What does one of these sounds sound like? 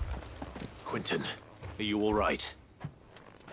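A man calls out with concern.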